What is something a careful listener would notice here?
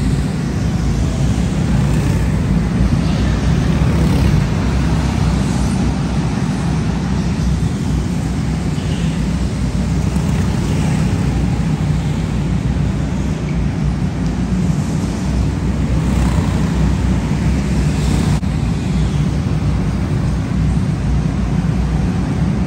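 Go-kart engines whine and rumble around an echoing indoor track.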